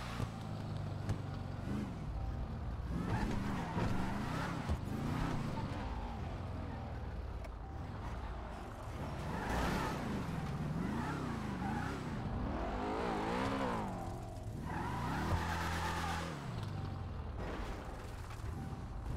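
A car engine hums and revs up and down as the car drives slowly.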